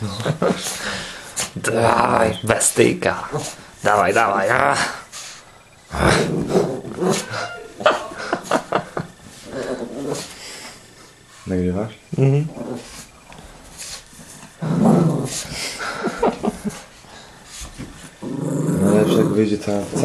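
A small dog growls and grunts playfully.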